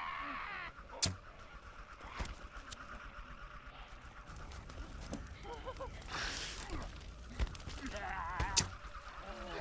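A bowstring twangs sharply as an arrow is shot.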